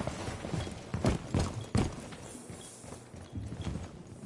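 Footsteps thump across a hard floor.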